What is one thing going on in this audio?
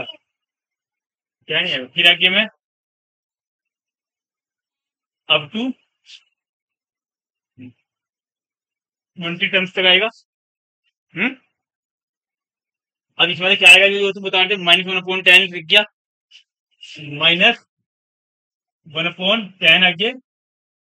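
A man explains calmly in short bursts, with pauses.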